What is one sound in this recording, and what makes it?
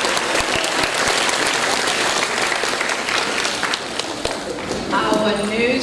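An audience claps in a large echoing hall.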